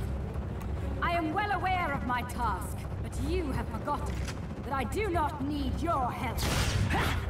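A woman speaks defiantly with a sharp tone.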